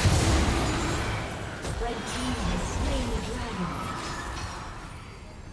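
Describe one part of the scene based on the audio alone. Fantasy spell effects whoosh and crackle in a fight.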